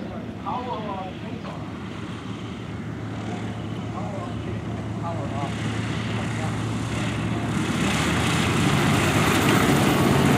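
A propeller plane's engine grows louder as the plane rolls close by.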